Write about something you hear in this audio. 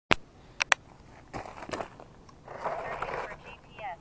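A hard object is set down on stones with a clatter.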